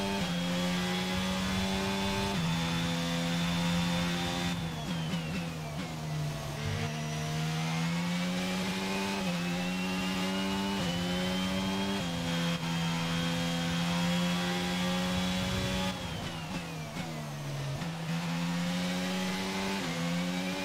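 A racing car engine screams at high revs, dropping in pitch on braking and rising again through the gears.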